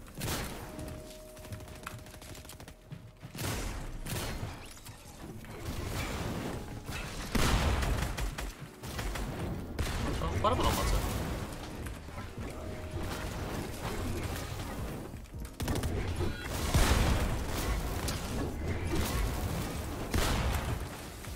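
A young man talks with animation into a nearby microphone.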